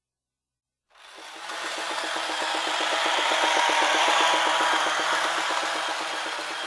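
A toy remote-control car whirs.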